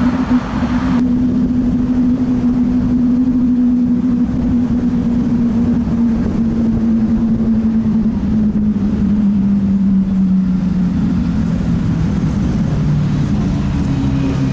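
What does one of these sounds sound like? A sports car engine drones steadily from inside the car, slowly dropping in pitch.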